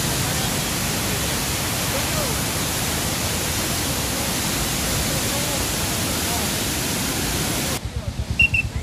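Floodwater roars and churns loudly.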